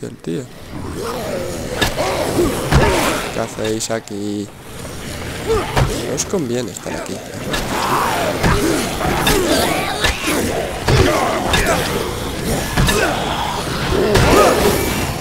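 A crowd of zombies groans and snarls.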